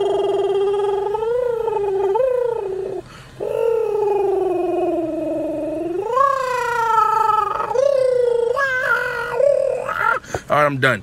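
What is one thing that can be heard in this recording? A man sings loudly close by, holding long drawn-out notes.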